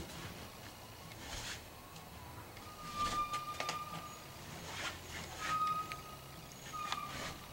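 A paintbrush scrapes and dabs against a wall.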